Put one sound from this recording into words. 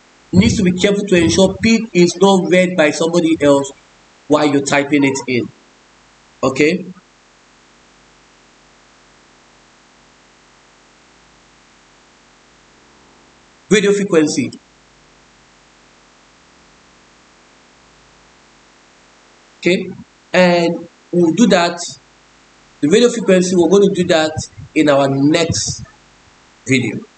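A man speaks calmly into a microphone, explaining, with pauses.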